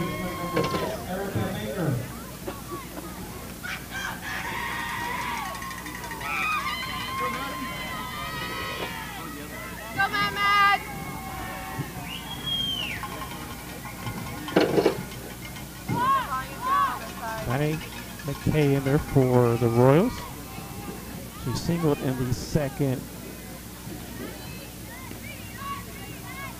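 Young women chant and cheer outdoors at a distance.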